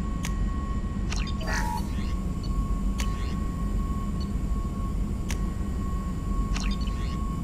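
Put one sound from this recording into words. Electronic menu clicks and short chirps sound as buttons are pressed.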